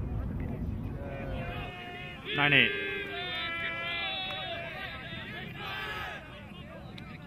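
Young men shout to each other in the distance across an open field.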